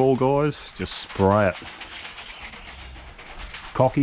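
A sprayer wand hisses as it sprays liquid.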